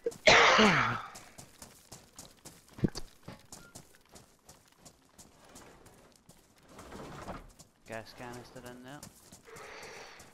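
Footsteps crunch on gravel at a jog.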